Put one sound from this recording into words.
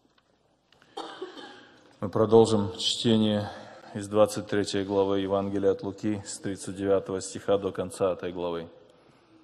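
A young man reads aloud calmly through a microphone.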